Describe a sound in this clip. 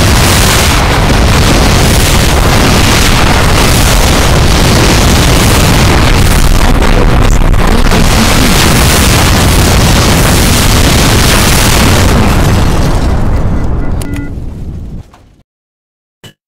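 Explosions and gunfire rumble and crackle continuously.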